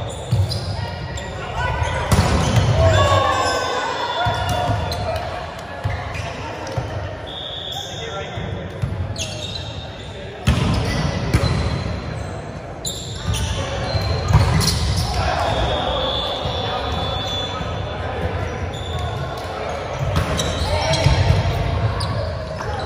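Young men and women call out and chatter in a large echoing gym.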